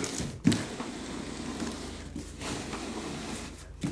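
A cardboard box scrapes as it is lifted off.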